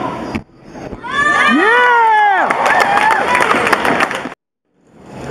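A crowd cheers loudly and whistles.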